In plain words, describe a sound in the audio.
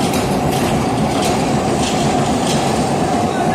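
Metal clanks sharply now and then.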